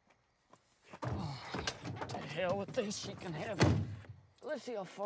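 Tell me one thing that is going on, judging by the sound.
A person climbs into a vehicle seat with a rustle and thump.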